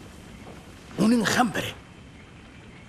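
A second man answers briefly in a low voice.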